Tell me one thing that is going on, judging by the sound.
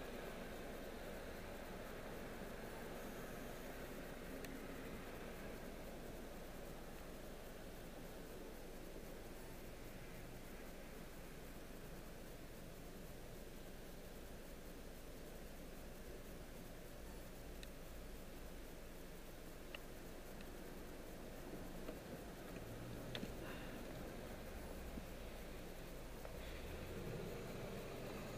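A car engine idles steadily, heard from inside the car.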